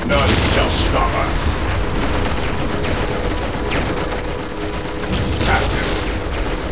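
Guns fire in rapid bursts amid a battle.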